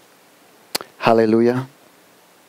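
A man speaks a short phrase into a microphone.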